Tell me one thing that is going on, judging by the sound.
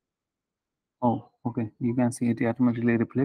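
A man speaks calmly through a microphone on an online call.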